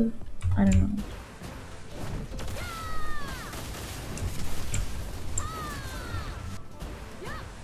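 Game combat effects whoosh and crackle.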